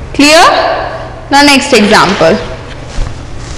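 A woman speaks loudly and with animation close by.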